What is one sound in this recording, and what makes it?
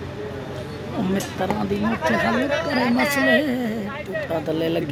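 A crowd cheers outdoors.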